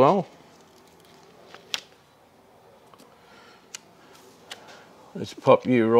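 A sticker peels off its backing paper.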